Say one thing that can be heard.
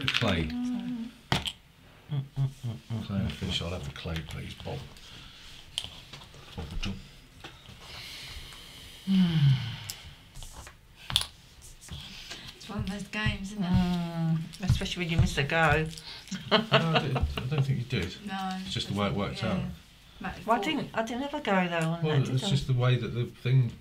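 Men talk casually around a table, heard through a microphone.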